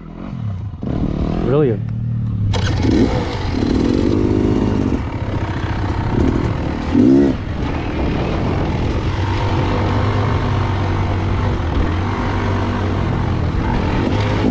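Tyres crunch over a rough, stony track.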